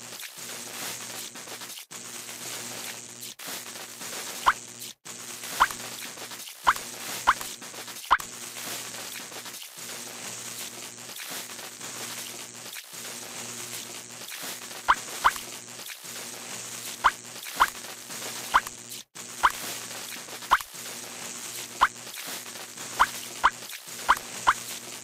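Cheerful game music plays steadily.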